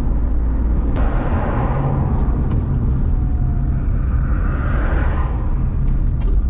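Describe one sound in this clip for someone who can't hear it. Passing vehicles whoosh by.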